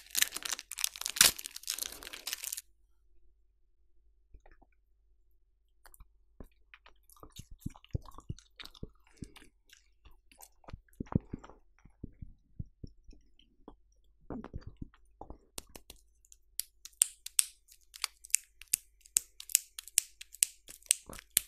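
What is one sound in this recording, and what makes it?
A crinkly wrapper rustles and crackles close by.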